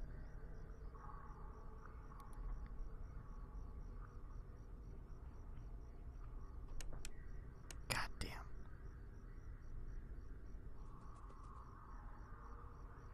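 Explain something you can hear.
A young man speaks quietly into a close microphone.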